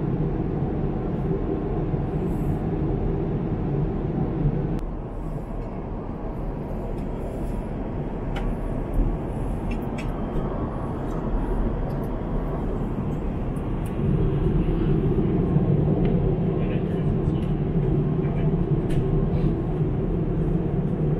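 A jet airliner's engines drone steadily inside the cabin.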